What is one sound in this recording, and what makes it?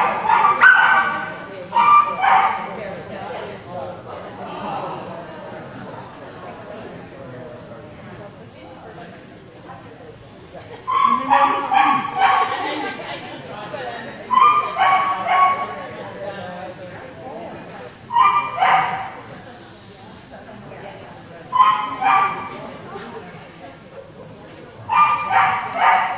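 A dog barks loudly in bursts in an echoing hall.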